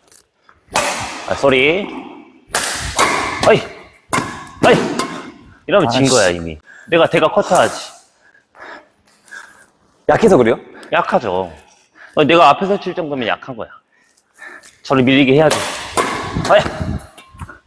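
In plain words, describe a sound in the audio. A racket strikes a shuttlecock with a sharp pop.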